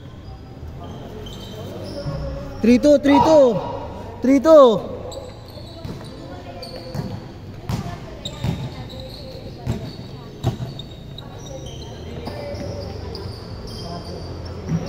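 Players' footsteps patter across the court.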